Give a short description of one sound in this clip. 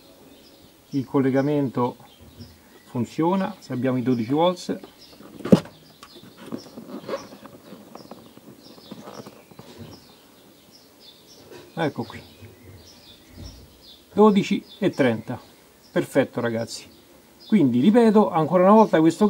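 A man speaks calmly and close by, explaining.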